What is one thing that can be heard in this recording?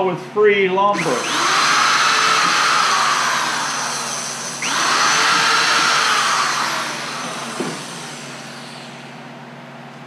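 A handheld power tool whirs loudly, then winds down.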